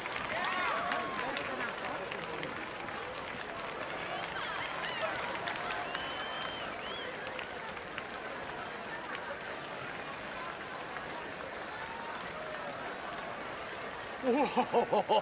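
Applause from a theatre audience fills a large hall and slowly dies down.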